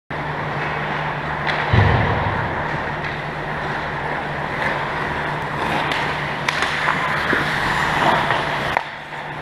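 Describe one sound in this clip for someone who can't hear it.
Skate blades scrape and hiss across ice.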